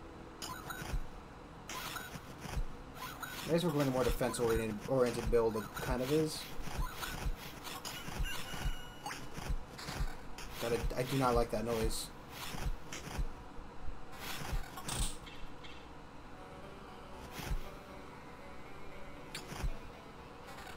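Swords clash and strike in quick, sharp hits.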